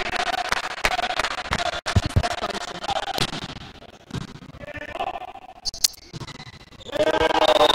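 A volleyball is struck hard with a sharp slap.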